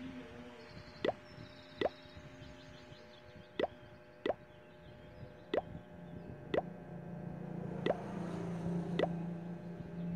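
A game's buttons make short, bright pinging sounds again and again.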